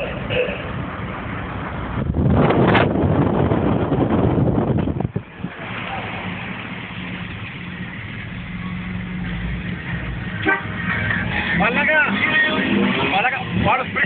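Wind rushes loudly past an open car.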